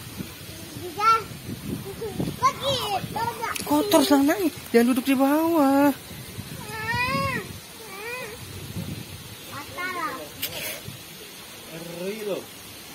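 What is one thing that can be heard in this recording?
A young child talks and squeals excitedly close by.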